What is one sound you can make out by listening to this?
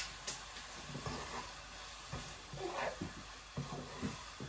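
A wooden spoon stirs rice in a pot with soft scraping.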